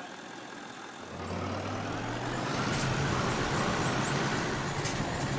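A truck engine rumbles and revs up as the truck drives off over rough ground.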